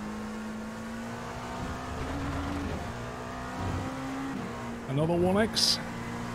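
A race car engine drones steadily, shifting gears and revving up sharply near the end.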